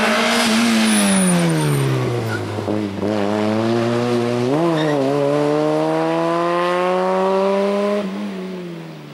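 A rally car's engine roars loudly close by, dropping in pitch as the car slows, then revving up hard as it pulls away.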